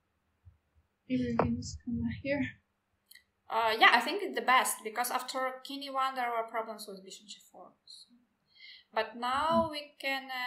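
A girl speaks calmly into a computer microphone.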